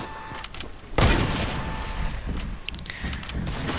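Gunshots ring out at close range.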